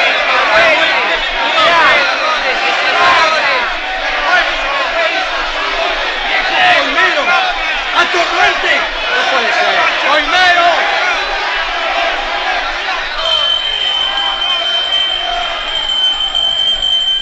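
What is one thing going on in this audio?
A crowd of men shouts and jeers loudly.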